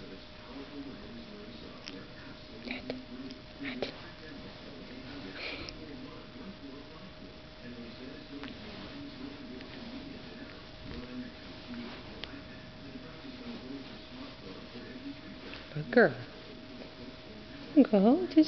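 A cat purrs steadily up close.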